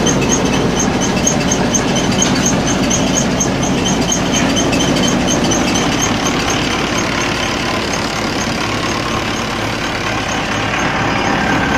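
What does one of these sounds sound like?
A tractor engine runs with a steady low drone.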